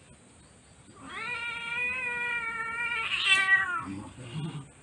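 A cat lets out a long, loud, wailing meow.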